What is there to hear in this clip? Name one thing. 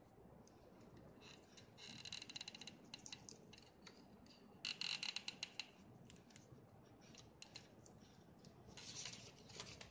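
A hot glue gun clicks as its trigger is squeezed.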